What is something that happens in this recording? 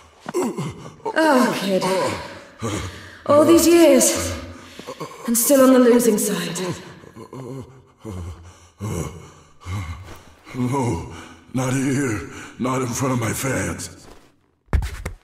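A young woman speaks with attitude, close and clear.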